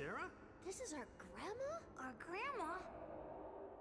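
A young woman speaks with surprise.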